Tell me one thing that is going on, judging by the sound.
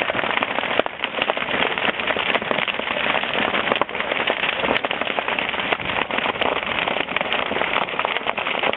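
Sparks pop and crackle sharply.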